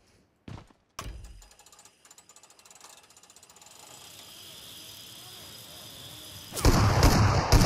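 A cable zipline whirs steadily.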